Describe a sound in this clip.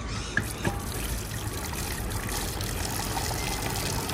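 Water pours and splashes into a basin of water.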